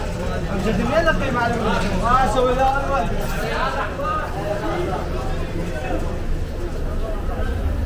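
A knife cuts meat on a board.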